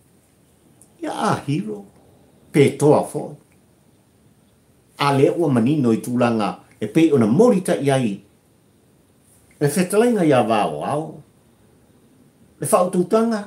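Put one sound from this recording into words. An elderly man talks calmly and warmly, close to a microphone, with pauses.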